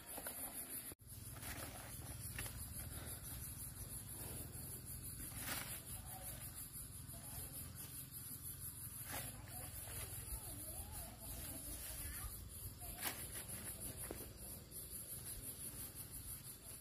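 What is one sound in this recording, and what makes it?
Leafy plants rustle as they are pulled and shaken.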